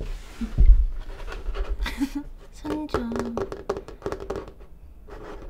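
Fingernails tap and scratch on a wooden table.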